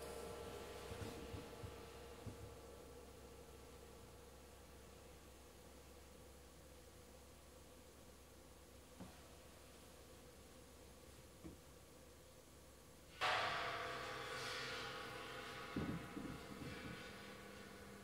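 Soft taps and clicks of percussion sound now and then.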